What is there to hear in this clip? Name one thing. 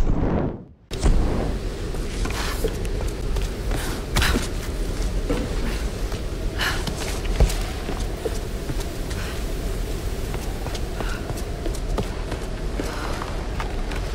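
Footsteps thud and scrape on stone.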